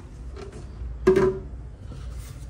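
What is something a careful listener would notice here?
A plastic container knocks against a stone counter.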